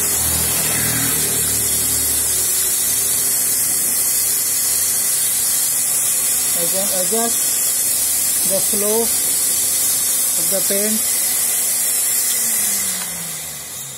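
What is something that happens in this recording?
A paint sprayer hisses steadily.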